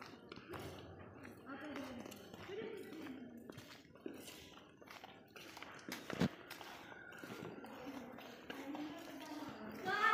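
Young women chat quietly at a distance.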